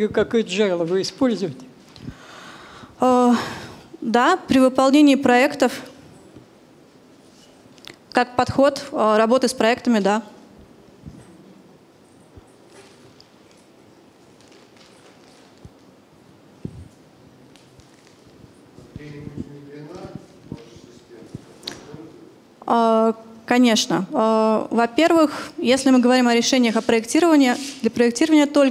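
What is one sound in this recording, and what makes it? A young woman speaks calmly through a microphone, pausing now and then.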